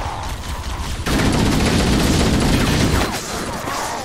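A video game plasma weapon explodes with a loud blast.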